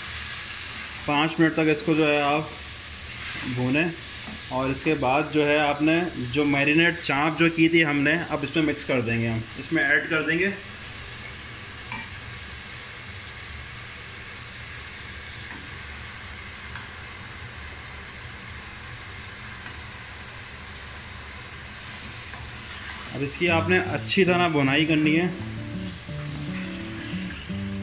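A spatula scrapes and stirs food in a metal pot.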